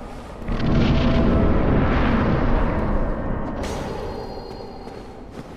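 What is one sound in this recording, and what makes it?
A loud rushing whoosh swells and fades.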